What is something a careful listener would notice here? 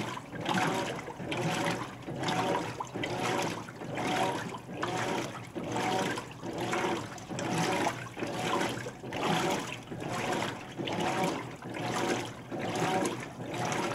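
Water sloshes and churns in a rhythmic back-and-forth as a washing machine agitates.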